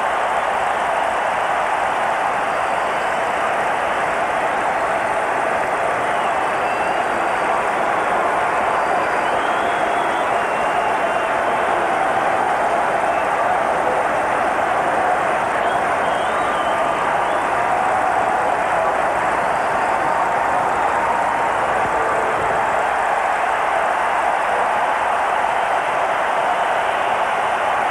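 A large crowd roars in an echoing indoor stadium.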